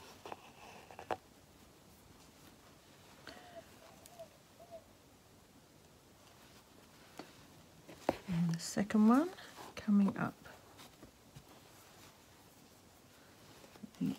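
Thread rasps softly as it is pulled through taut fabric.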